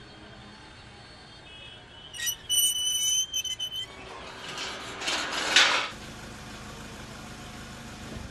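Tea pours into a pot.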